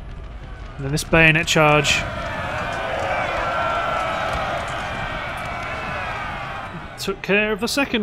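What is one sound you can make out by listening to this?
A crowd of soldiers shouts and cheers in a battle.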